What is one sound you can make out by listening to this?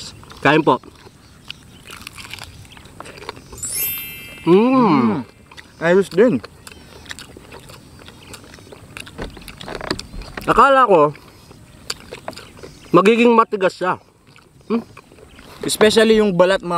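Food crunches and squelches as it is chewed up close.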